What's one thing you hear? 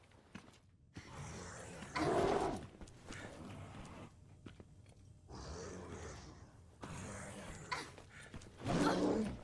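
A zombie groans hoarsely nearby.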